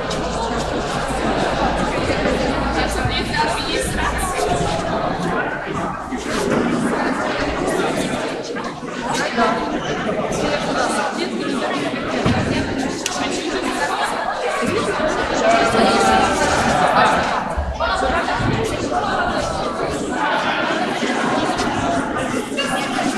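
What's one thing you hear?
A large crowd of adults and children chatters in a large echoing hall.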